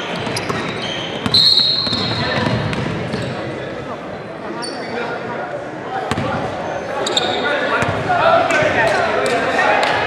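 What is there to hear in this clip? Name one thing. Young women call out to each other across an echoing gym.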